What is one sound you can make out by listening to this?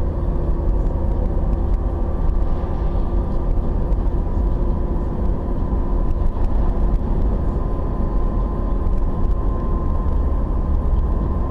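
A car drives along an asphalt road, heard from inside with a steady low road rumble.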